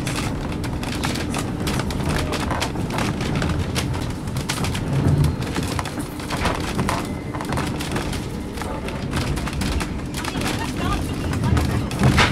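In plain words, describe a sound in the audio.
A train rumbles and clatters along its track in the distance.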